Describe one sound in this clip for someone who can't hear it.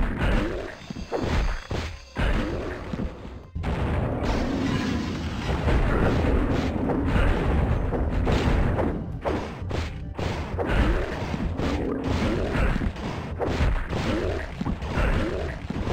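A spiked mace smashes into monsters with heavy thuds.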